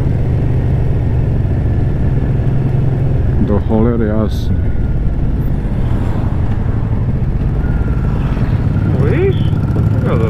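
A motorcycle engine rumbles steadily at cruising speed.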